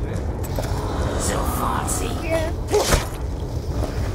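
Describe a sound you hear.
A zombie growls and moans close by.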